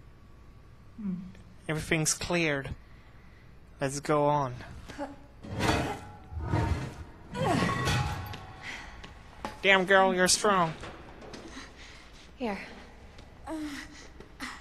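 A woman groans and speaks with effort close by.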